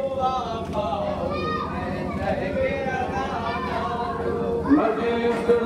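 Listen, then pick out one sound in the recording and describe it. An elderly man chants mournfully into a microphone, heard through a loudspeaker outdoors.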